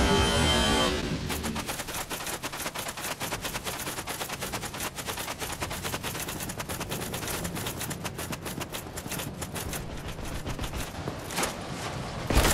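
Footsteps in armour run quickly on stone.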